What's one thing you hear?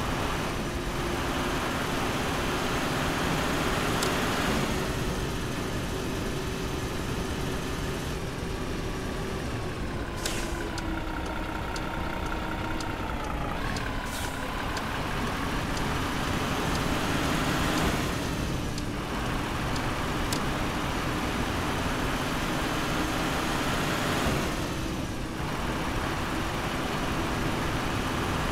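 A semi truck's diesel engine drones as the truck drives.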